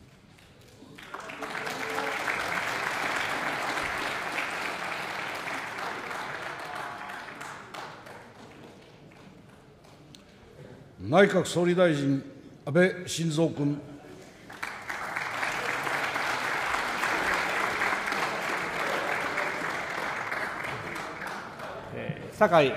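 A crowd applauds in a large echoing hall.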